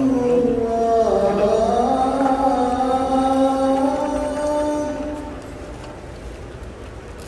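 A large crowd murmurs softly.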